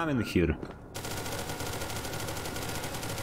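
A gun fires rapidly.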